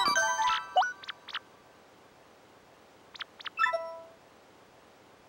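Bright electronic menu chimes and blips play in quick bursts.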